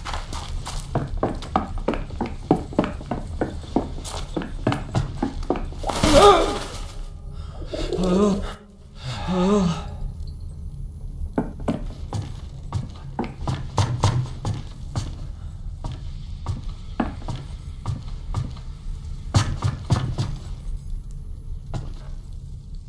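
Footsteps thud and creak on wooden boards.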